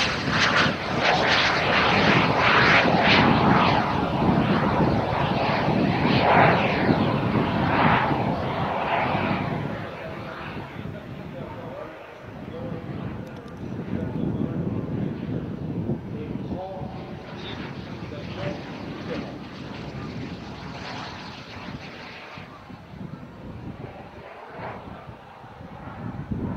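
The turbines of a small twin-jet light plane roar overhead as it swoops past.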